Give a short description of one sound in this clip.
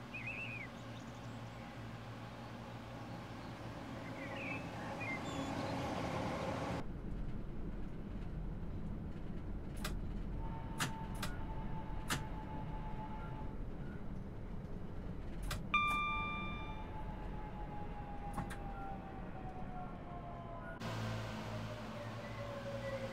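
An electric train hums steadily as it rolls along.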